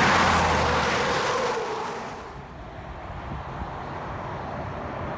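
Distant highway traffic hums steadily.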